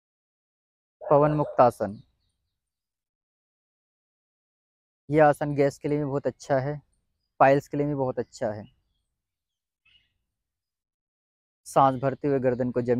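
A young man speaks calmly and clearly in short phrases, close by, with long pauses in between.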